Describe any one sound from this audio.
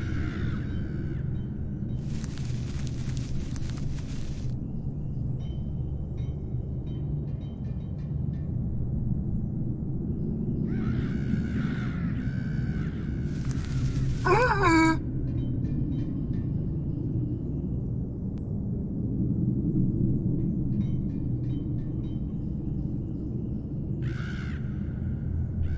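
Flames roar low and steadily.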